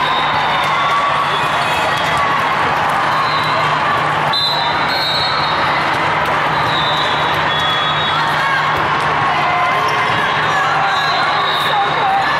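Many voices murmur and chatter in a large echoing hall.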